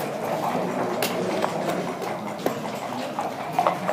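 Backgammon checkers click as they are moved across the board.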